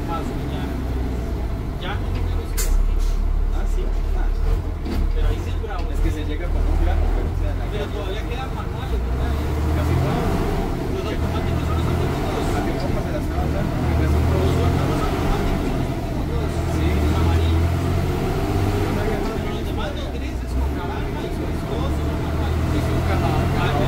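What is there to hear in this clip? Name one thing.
Loose panels rattle inside a moving bus.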